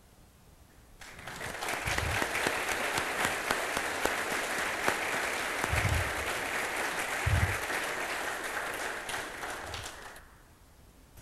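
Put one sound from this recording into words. An audience applauds steadily, then the clapping dies away.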